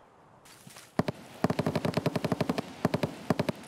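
A rifle fires in a rapid automatic burst.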